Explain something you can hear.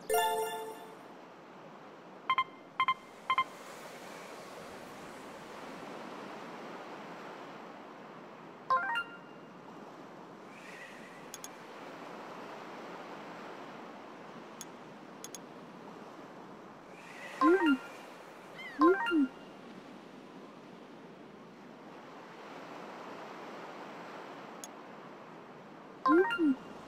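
Short electronic chimes ring out now and then.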